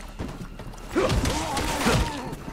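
A man grunts.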